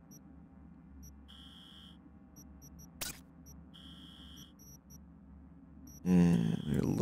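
Soft electronic menu beeps and clicks sound.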